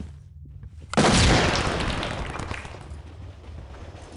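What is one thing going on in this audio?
A smoke grenade bursts with a loud hiss that slowly fades.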